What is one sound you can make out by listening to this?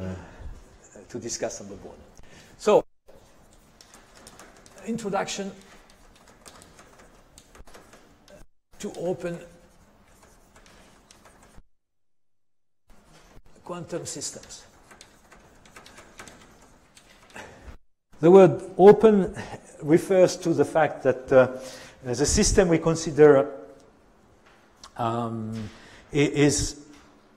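An elderly man lectures in an echoing room, speaking calmly with pauses.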